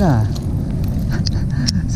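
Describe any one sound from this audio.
A fishing reel clicks as it is cranked.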